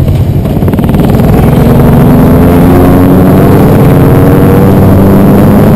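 A motorcycle engine revs higher and higher as it speeds up.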